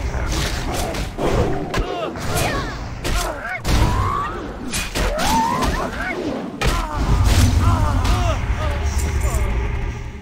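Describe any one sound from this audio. Magic spells crackle and strike in a fight.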